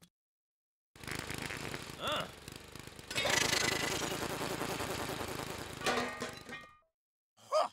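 A lawn mower engine runs.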